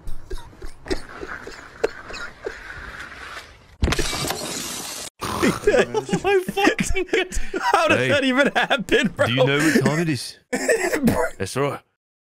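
Two men laugh loudly into microphones.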